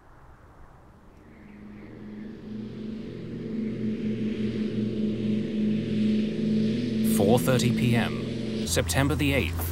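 A jet airliner drones steadily in flight.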